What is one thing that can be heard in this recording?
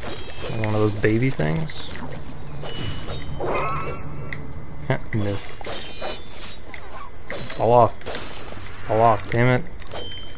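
Creatures burst apart with wet splatters.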